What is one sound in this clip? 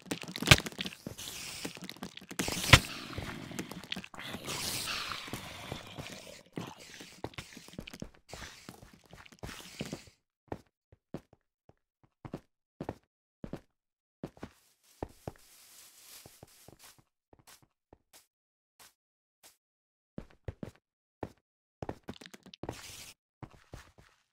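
Sharp game sword hits thud again and again.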